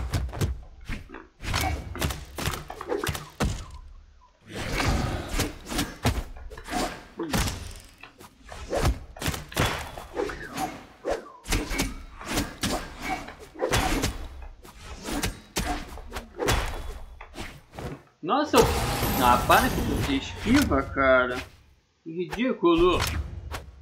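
Sharp punches and sword slashes strike many times in quick bursts.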